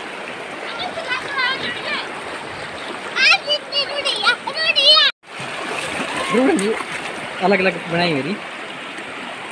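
A child shouts excitedly nearby.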